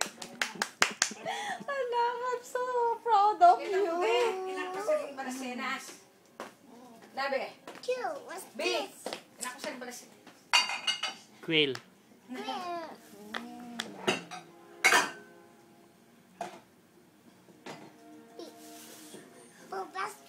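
A young child sings and talks playfully close by.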